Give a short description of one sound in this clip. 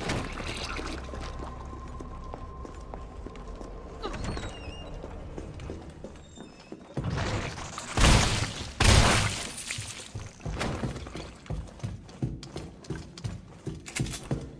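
Footsteps thud on a hard floor.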